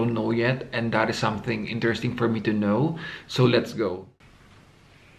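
A young man talks calmly, close to the microphone.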